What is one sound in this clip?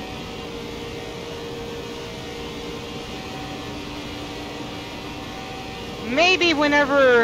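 A race car engine drones steadily at speed.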